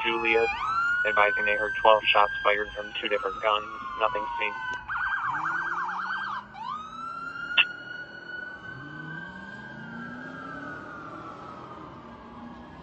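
A police siren wails and yelps close by.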